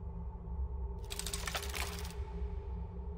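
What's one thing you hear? A metal mechanism rattles and whirs briefly.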